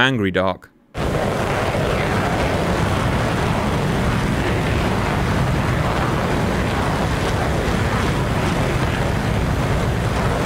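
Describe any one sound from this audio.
A rocket motor roars with a steady rushing noise.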